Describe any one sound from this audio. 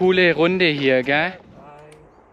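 A middle-aged man speaks with animation close to the microphone.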